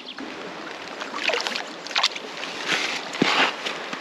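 Water sloshes as a bag is dipped into a stream.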